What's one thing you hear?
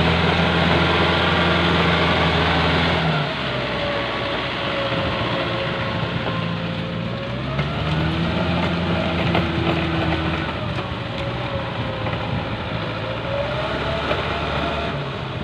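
A tractor engine rumbles steadily, close at first and then farther off.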